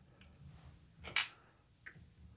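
A screwdriver scrapes briefly against metal.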